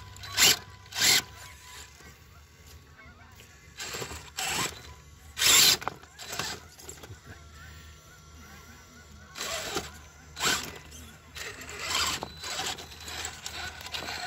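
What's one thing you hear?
Rubber tyres scrape and knock against rocks.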